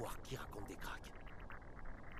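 A man speaks in a rough, tense voice close by.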